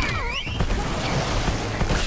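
A flame bursts out with a roar.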